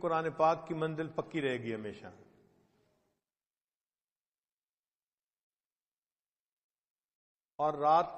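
An elderly man reads aloud calmly into a microphone.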